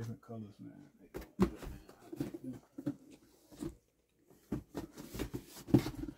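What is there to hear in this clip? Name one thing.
Cardboard boxes scrape and thump as they are moved.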